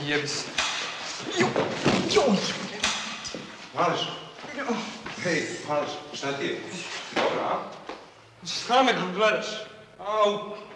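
Two men grunt and strain as they scuffle.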